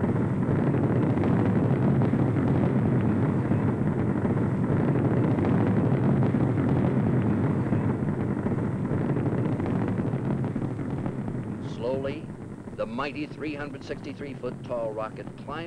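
A rocket engine roars loudly with a deep, rumbling thunder that slowly fades.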